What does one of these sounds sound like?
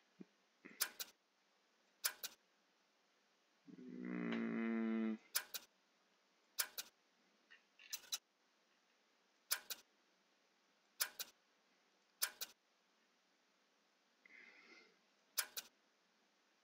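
Short menu clicks tick now and then.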